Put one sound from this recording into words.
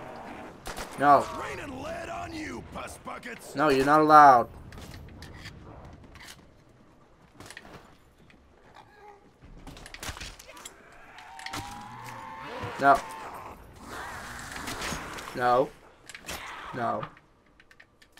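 A zombie snarls and groans close by.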